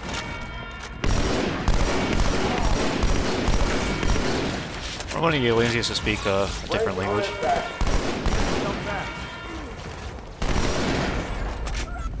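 A rifle fires bursts of shots.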